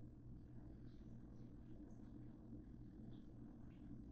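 A knob clicks as it is turned.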